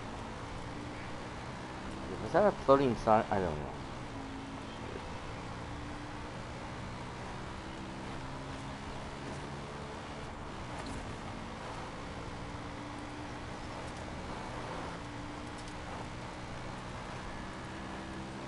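A quad bike engine hums steadily while driving.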